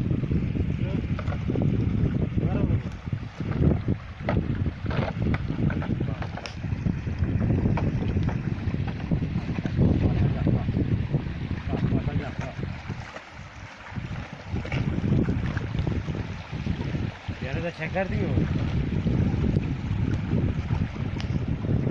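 Dogs splash as they wade through shallow water.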